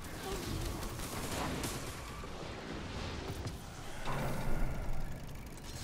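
Gunfire bursts in a game, with ringing blasts.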